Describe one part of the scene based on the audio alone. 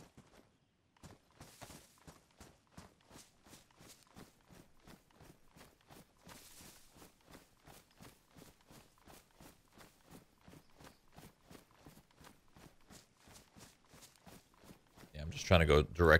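Footsteps rustle steadily through grass.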